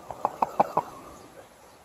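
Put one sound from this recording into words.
Water bubbles and gurgles in a bong.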